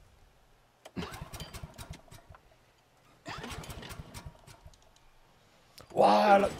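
A generator's starter cord is yanked several times with rattling clicks.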